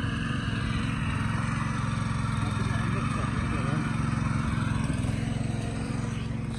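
A small motor tiller engine chugs steadily nearby.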